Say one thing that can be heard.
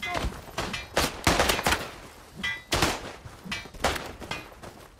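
Rifle shots crack loudly, one after another, outdoors.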